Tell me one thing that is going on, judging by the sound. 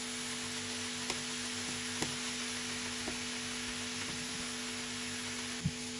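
A tomato is grated into a pan.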